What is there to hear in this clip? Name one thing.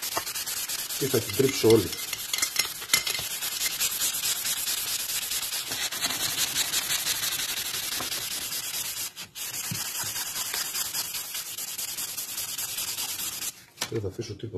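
A metal tool scrapes rapidly along a metal rod.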